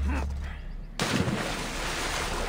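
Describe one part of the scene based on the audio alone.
Water splashes as a person dives in.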